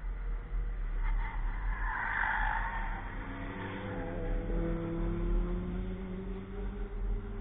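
A car engine roars as a car speeds past and fades into the distance.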